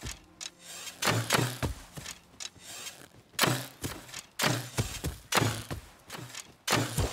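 Footsteps thud and rustle on grass at a steady pace.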